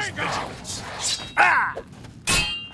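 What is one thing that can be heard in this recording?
A magic spell bursts with a crackling whoosh.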